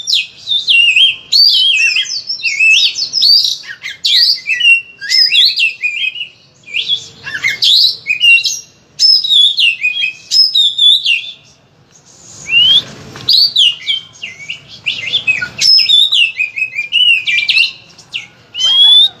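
An oriental magpie-robin sings a varied, mimicking song of rapid whistles and trills.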